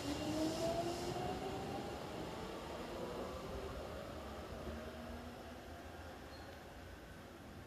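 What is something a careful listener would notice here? A train rumbles away along the tracks, its motor whining and slowly fading into the distance.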